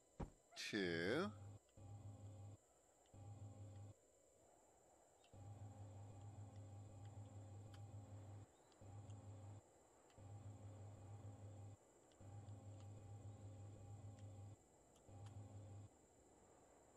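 A low jetpack thruster hums in repeated bursts, starting and stopping.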